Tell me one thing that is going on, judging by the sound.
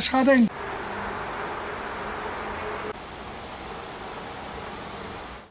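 Wind rustles leaves in trees outdoors.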